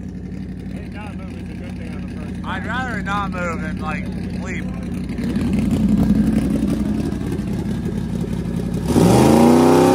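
A big engine idles with a deep rumble.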